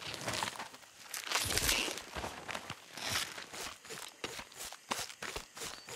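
A knife slices wetly through an animal carcass.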